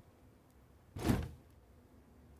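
A computer case is set down with a soft thud.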